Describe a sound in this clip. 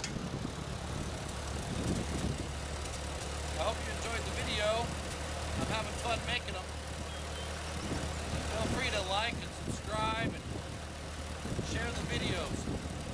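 A tractor engine idles with a steady low chugging, close by.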